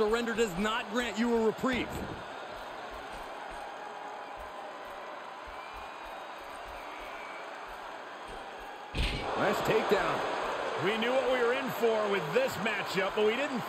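A large crowd roars and cheers in a big echoing arena.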